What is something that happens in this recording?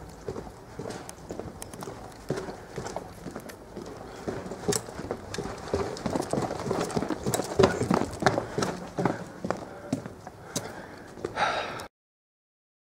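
Footsteps tread on stone paving.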